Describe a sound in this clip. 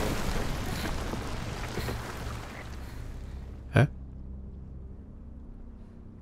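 Footsteps splash slowly through shallow water.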